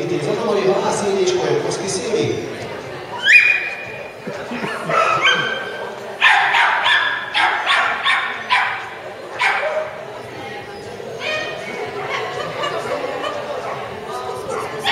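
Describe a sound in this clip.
A woman calls out commands to a dog.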